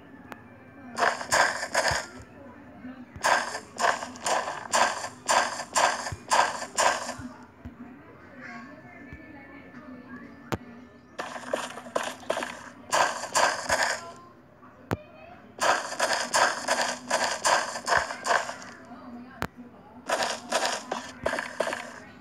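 Footsteps run quickly in bursts over hard ground.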